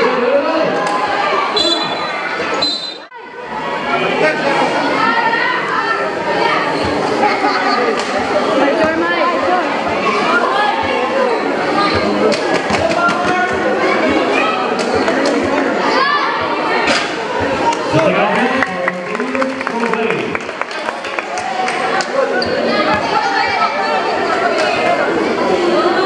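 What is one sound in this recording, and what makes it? A large crowd of children and young people chatters and shouts outdoors.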